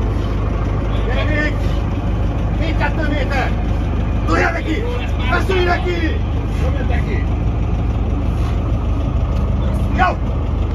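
A man shouts encouragement close by.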